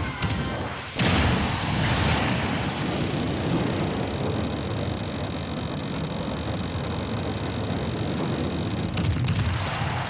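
A loud rushing whoosh roars on and on.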